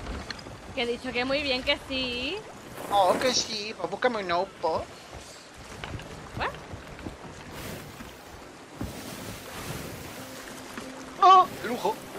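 Waves wash and splash against a wooden ship.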